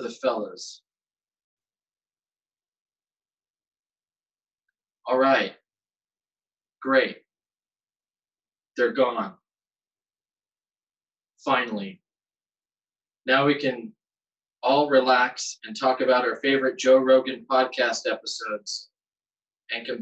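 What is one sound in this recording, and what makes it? A man reads aloud in short bursts with pauses, heard through a microphone.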